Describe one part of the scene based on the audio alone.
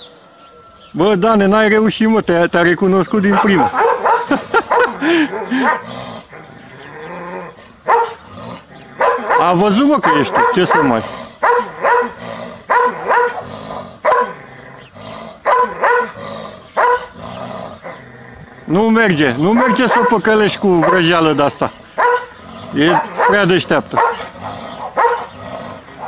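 A large dog barks loudly and excitedly close by.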